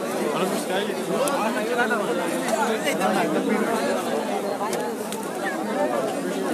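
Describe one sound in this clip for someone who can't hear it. A dense crowd of men and women shouts and chatters loudly outdoors.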